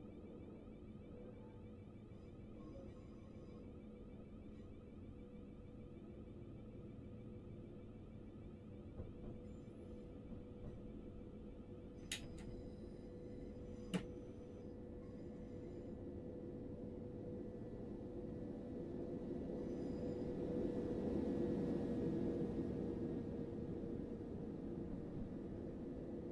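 A train engine hums steadily as the train rolls along the tracks.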